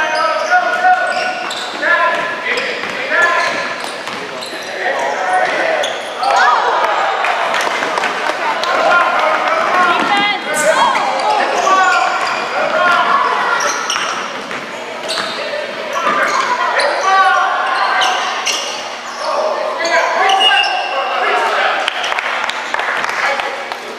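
Young players and spectators shout and call out in a large echoing hall.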